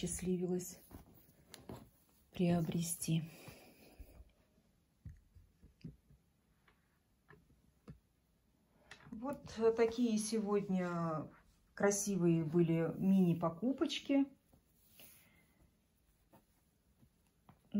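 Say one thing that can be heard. Fabric rustles softly as hands handle a cloth.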